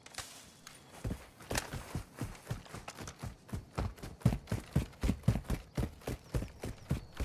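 Footsteps thud quickly on dry ground.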